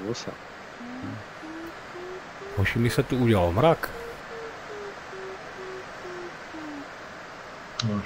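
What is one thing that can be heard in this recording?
An electronic variometer beeps rapidly, its pitch rising and then falling.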